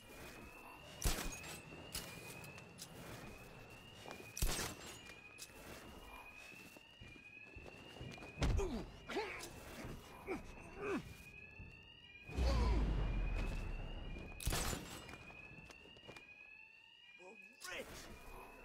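Heavy punches and thuds land in a scuffle.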